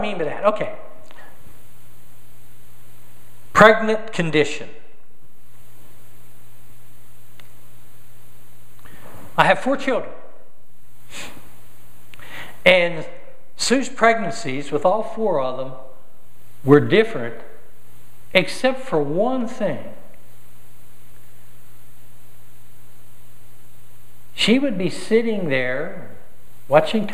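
A middle-aged man speaks calmly through a microphone in a large echoing hall, pausing often.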